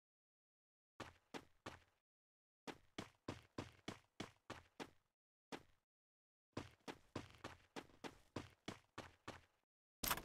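Footsteps clatter quickly on a metal floor.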